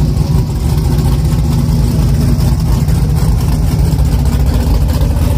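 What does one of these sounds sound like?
A truck's big engine rumbles loudly at idle, close by.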